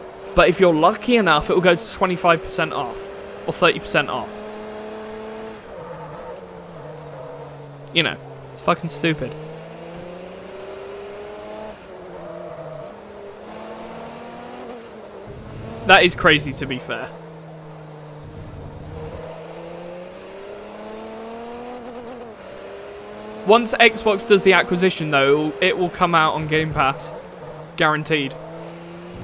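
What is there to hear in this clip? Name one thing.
A racing car engine whines steadily, rising and dropping in pitch as it shifts gears.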